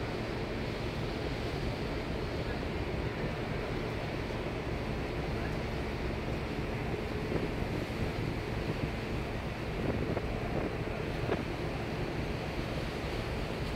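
Waves wash steadily on the open sea.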